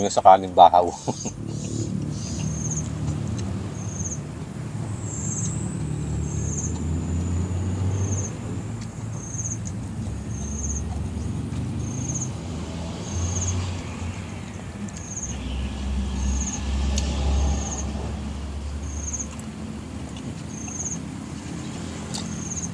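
A man chews and slurps food noisily close by.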